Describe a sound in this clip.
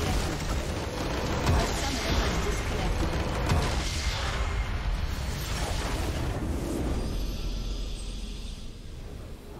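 Game spell effects crackle and boom loudly.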